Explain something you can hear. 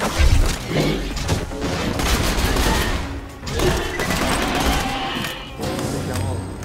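Gunfire bursts in quick loud cracks.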